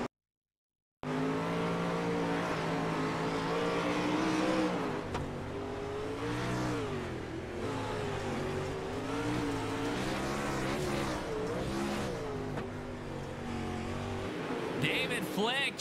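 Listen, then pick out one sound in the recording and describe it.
Racing car engines roar loudly, rising and falling in pitch as they rev.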